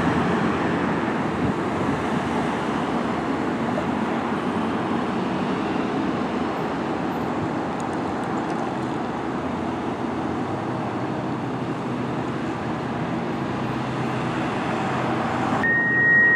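Car engines and tyres hum steadily as traffic passes on a road.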